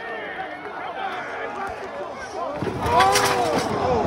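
A body crashes heavily onto a metal chair.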